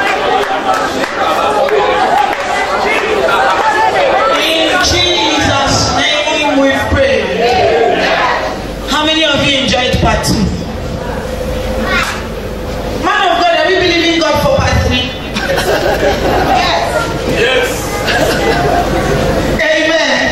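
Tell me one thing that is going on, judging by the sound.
A crowd of men and women pray aloud together.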